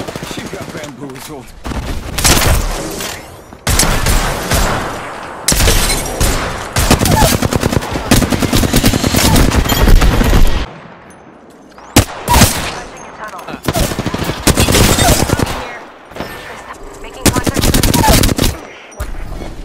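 Heavy gunshots boom one at a time.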